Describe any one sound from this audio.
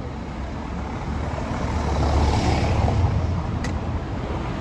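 A car drives past close by over cobblestones.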